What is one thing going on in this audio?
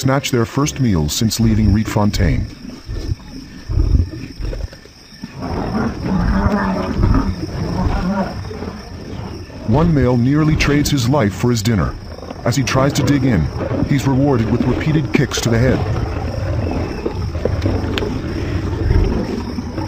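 A lion growls close by.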